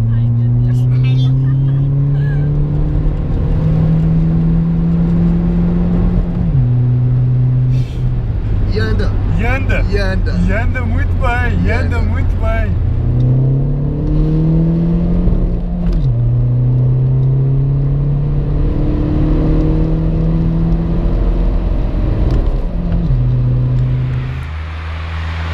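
A car engine roars and revs up repeatedly, dropping as the gears change.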